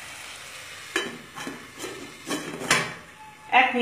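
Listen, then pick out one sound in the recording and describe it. A metal lid clanks onto a pot.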